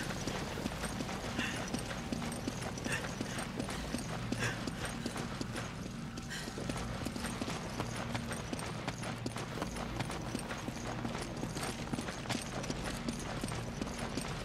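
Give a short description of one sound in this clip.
Heavy boots thud quickly on stone as a man runs.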